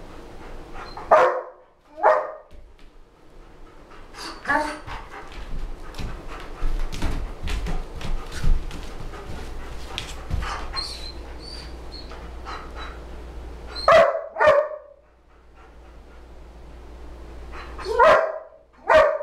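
A man speaks calmly and encouragingly nearby.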